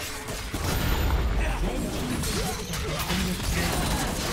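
A turret collapses with a loud crash.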